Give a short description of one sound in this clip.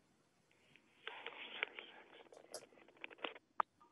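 A middle-aged woman speaks faintly over a muffled online call.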